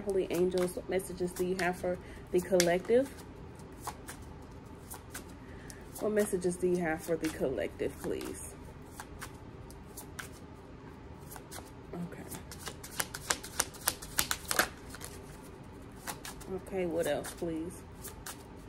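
Playing cards riffle and shuffle in a woman's hands.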